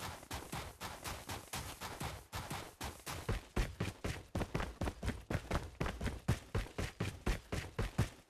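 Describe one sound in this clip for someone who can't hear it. Quick footsteps run steadily over the ground.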